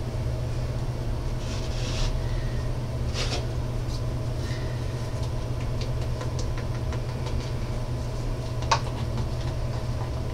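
A plastic cup knocks lightly against a board.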